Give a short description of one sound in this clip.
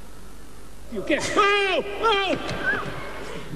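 A man groans loudly.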